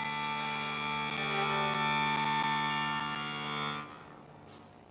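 A flute plays a melody up close.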